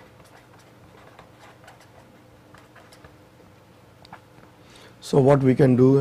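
A marker pen squeaks and scratches across paper.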